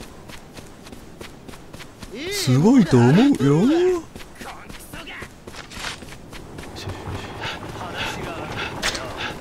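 Quick footsteps run on packed dirt.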